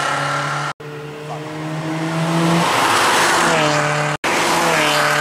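A rally car engine roars at high revs as it speeds past.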